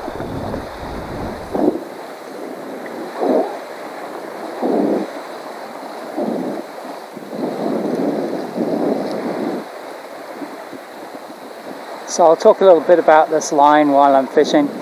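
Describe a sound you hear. Wind gusts over open water.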